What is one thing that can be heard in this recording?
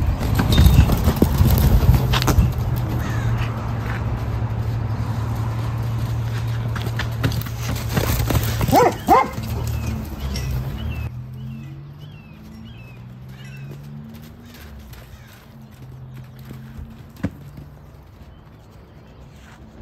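Hooves thud on soft sand as a pony gallops.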